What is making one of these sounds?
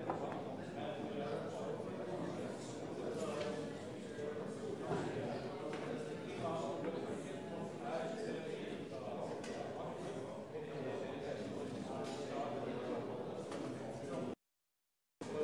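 A man speaks calmly nearby.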